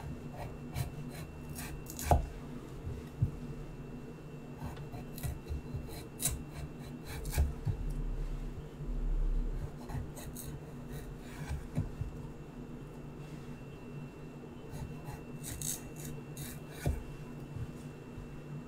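A knife chops through garlic on a wooden cutting board with quick, sharp taps.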